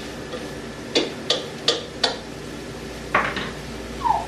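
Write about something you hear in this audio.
A spoon taps sharply against the rim of a metal pot several times.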